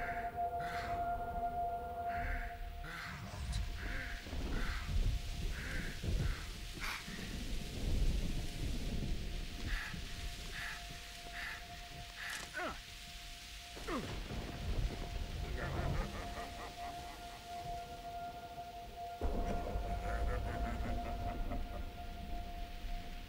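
A man groans and pants heavily in pain, close by.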